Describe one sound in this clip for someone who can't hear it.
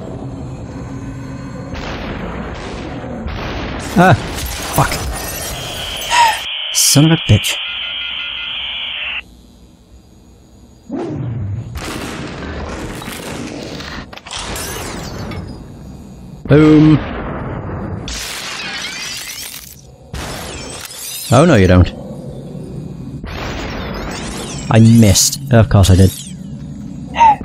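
Bodies shatter with a sweeping, glassy whoosh.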